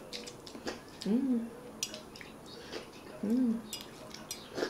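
A man hums with pleasure while eating, close by.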